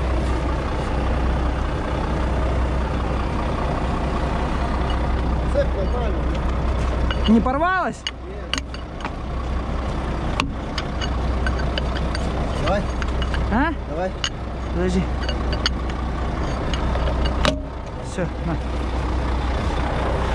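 A truck engine idles steadily close by.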